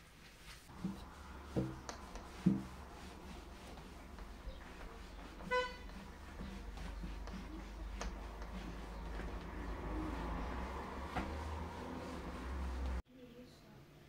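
A cloth rubs and squeaks against window glass.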